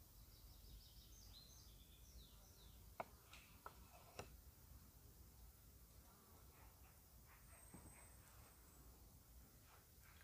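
A knife taps and scrapes on a wooden board.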